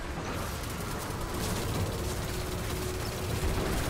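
Monsters screech and growl.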